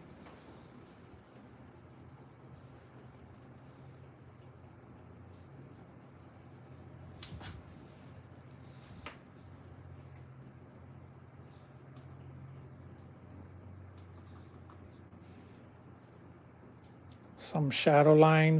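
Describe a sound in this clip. A paintbrush brushes softly on canvas.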